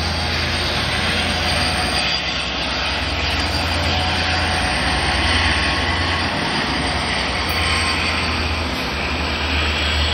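A diesel locomotive rumbles steadily as it approaches slowly.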